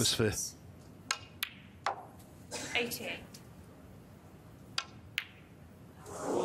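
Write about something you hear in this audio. Snooker balls click against each other.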